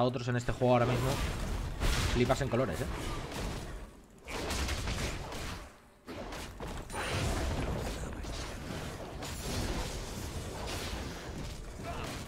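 Game combat effects clash and whoosh in a fight.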